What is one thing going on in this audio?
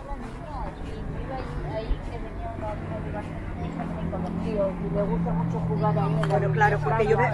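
An elderly woman talks with animation nearby.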